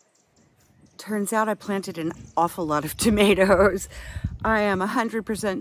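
A woman speaks with animation close to the microphone.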